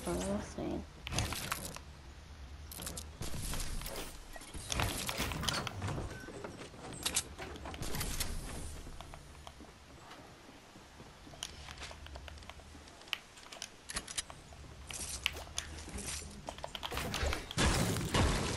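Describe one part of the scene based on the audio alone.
Building pieces snap into place with sharp knocks.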